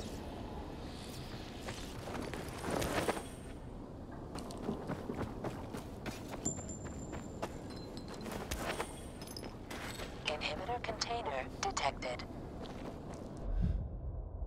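Footsteps crunch quickly on dirt and gravel.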